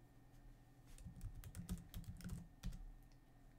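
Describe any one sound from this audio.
Hands knock and tap lightly on a desk close by.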